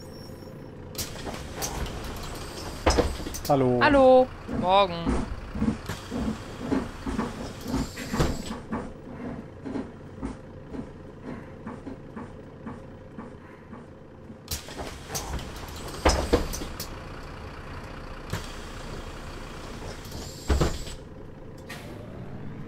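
Pneumatic bus doors hiss and thump open and shut.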